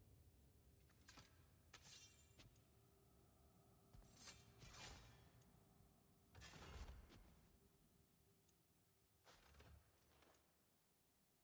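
Metal weapons clank and whoosh as they are swapped.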